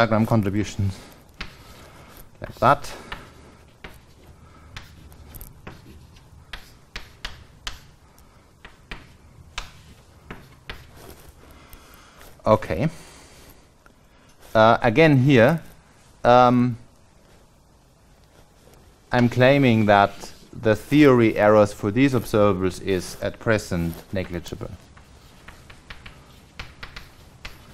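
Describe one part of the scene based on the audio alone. Chalk taps and scratches on a board.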